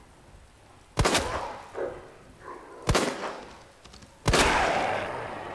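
Gunshots ring out with a sharp crack and echo.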